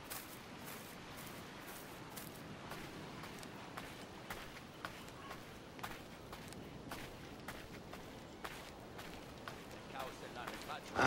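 Footsteps crunch steadily on sand and gravel.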